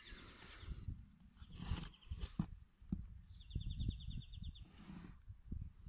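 A plastic plant pot knocks and scrapes softly as it is handled.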